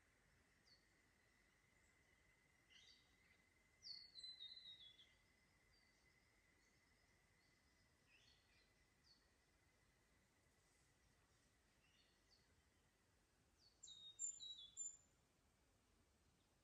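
Water trickles gently over stones in a creek.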